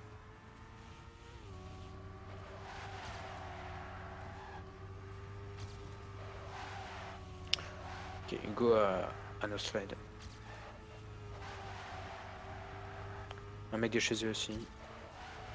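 A racing car engine hums steadily at high speed.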